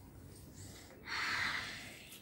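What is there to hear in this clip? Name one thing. A child's hands rub together briskly.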